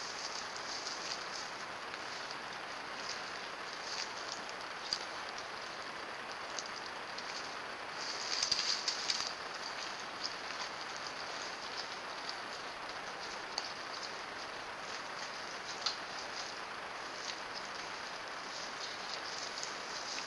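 Footsteps crunch through dry grass and leaves.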